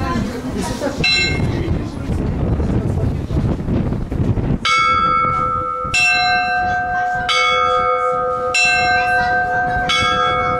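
Small bells ring out in a bright, clanging pattern.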